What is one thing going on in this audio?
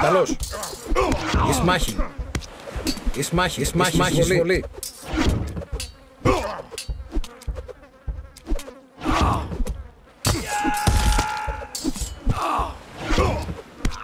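Swords clash and clang in a small battle.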